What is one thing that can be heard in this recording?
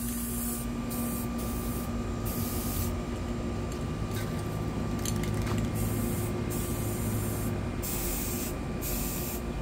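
Spray paint cans hiss in short bursts.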